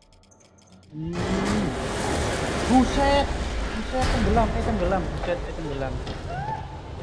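Water rushes and splashes loudly.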